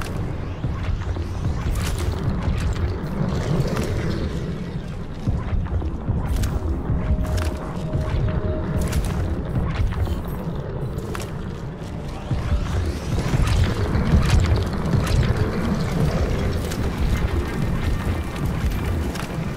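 Footsteps rustle and crunch through undergrowth.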